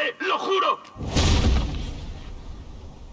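A heavy body thuds onto a hard floor.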